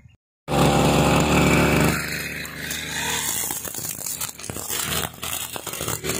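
A grass trimmer cuts through grass and weeds.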